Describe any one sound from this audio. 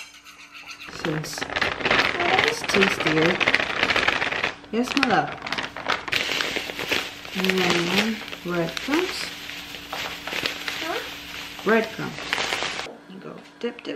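Dry flour and crumbs pour from a paper bag onto a metal tray with a soft rustling hiss.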